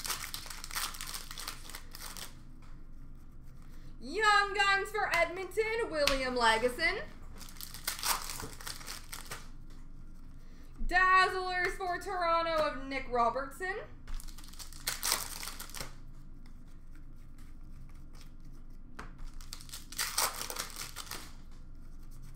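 A foil card wrapper crinkles and tears open.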